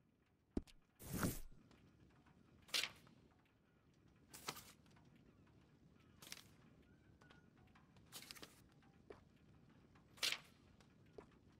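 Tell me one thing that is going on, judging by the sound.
Catalogue pages turn with a soft papery swish.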